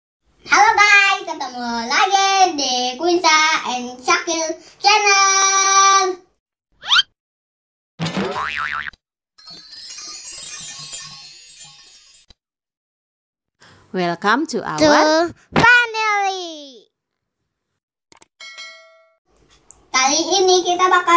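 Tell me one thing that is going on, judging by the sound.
A young boy speaks with animation close to a microphone.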